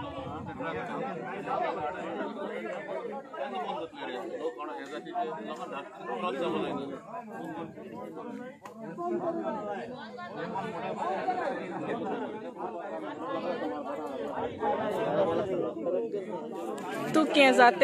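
A crowd of men talk and argue loudly outdoors.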